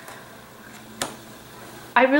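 A card taps softly onto a table.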